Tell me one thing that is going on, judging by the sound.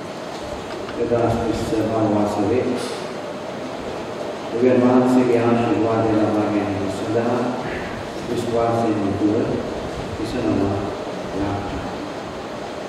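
A man reads out slowly through a microphone in a large echoing hall.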